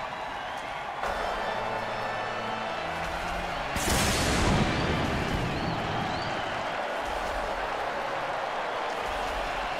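A large stadium crowd roars and cheers steadily in the distance.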